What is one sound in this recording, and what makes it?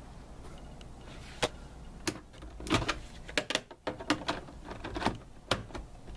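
A plastic game cartridge clicks as it is pulled out and pushed in.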